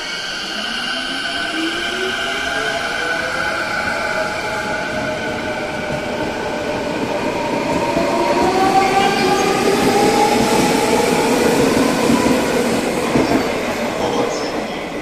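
An electric commuter train's motors whine, rising in pitch as the train pulls away.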